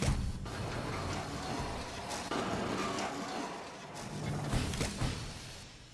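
A mechanical hand shoots out on a cable with a whirring whoosh.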